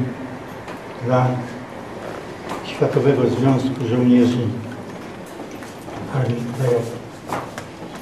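An elderly man speaks quietly up close.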